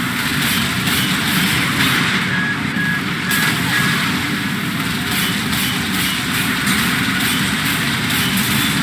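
Explosions boom and crackle.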